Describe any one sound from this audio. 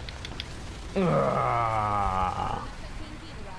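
A huge creature lets out a long, shrill roar.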